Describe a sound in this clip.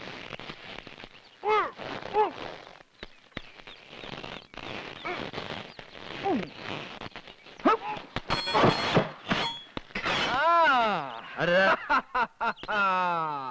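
Several men shout and laugh excitedly.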